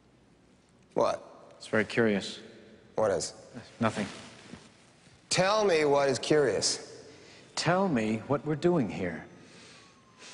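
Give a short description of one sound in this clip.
A man speaks loudly in a large echoing hall.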